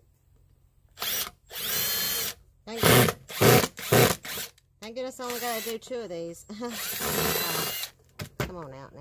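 A cordless impact driver drives screws into wood in short bursts.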